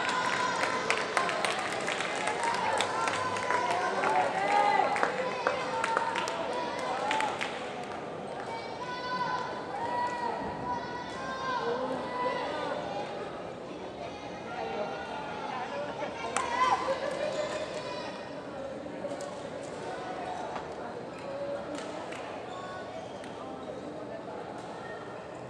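Sports shoes squeak on a wooden court.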